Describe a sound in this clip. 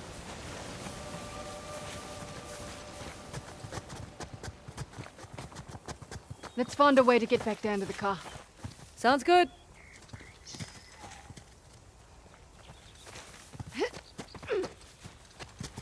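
Footsteps run over grass and stone.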